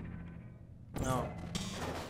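A sci-fi weapon fires with a sharp electronic zap.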